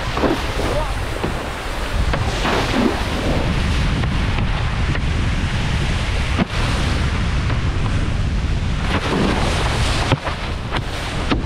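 Water sprays and hisses under a wakeboard carving across a lake.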